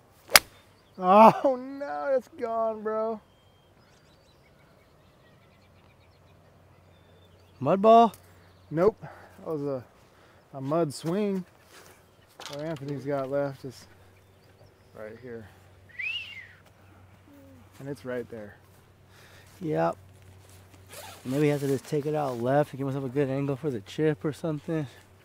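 A man talks with animation, close by, outdoors.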